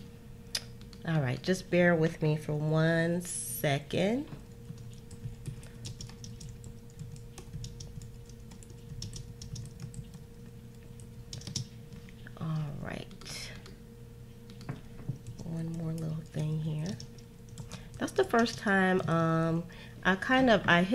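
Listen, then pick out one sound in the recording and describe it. A woman speaks calmly and close to a microphone, with pauses.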